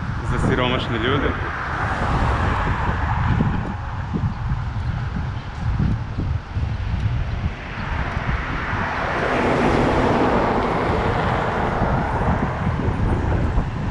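Wind rumbles and buffets loudly outdoors.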